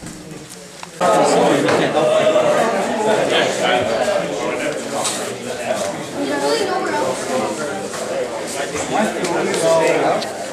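A crowd of men chatter loudly in an echoing room.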